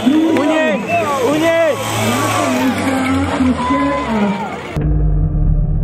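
Men and women in a nearby crowd shout and cheer.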